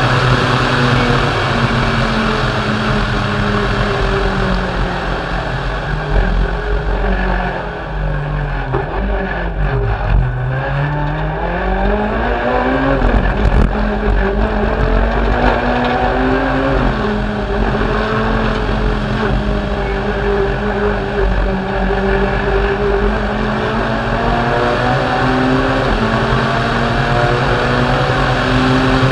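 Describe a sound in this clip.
Tyres rumble and crunch over a narrow rough road.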